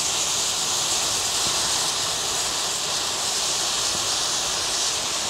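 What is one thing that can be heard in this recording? A jet of flame roars steadily outdoors.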